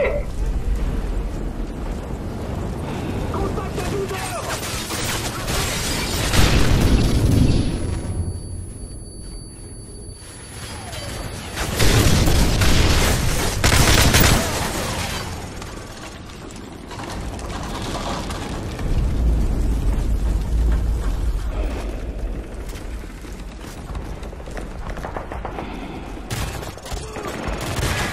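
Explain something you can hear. Gunfire cracks and rattles in bursts.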